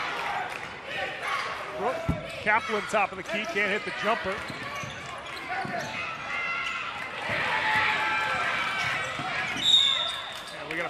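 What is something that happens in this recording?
A basketball bounces on the court.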